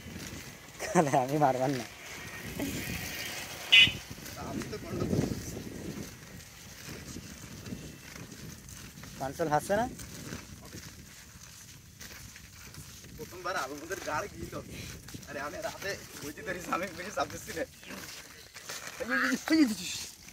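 Young men talk and laugh nearby outdoors.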